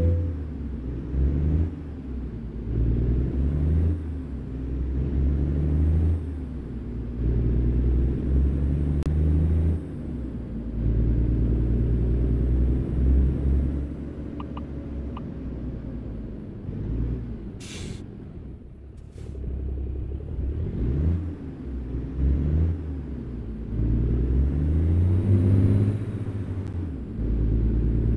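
A heavy truck engine rumbles and revs up and down through the gears.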